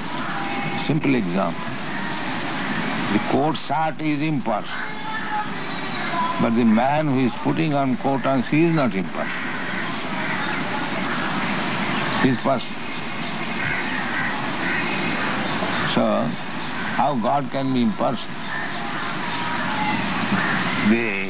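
An elderly man speaks slowly and calmly.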